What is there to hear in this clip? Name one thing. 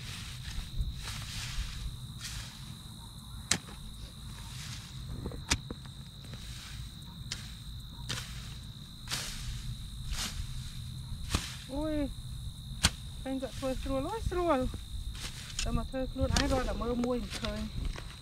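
A hoe chops into dry soil again and again.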